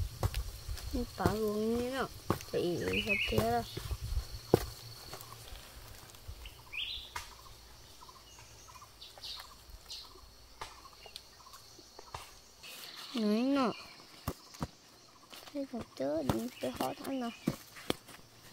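A young boy speaks calmly and close by.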